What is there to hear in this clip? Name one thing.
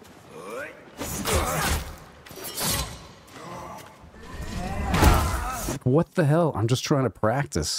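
Swords clash and scrape in a fight.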